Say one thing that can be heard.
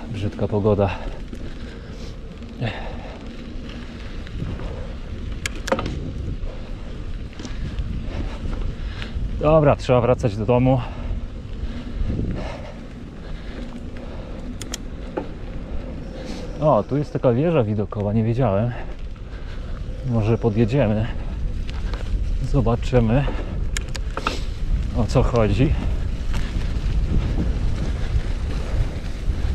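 Wind rumbles over the microphone outdoors.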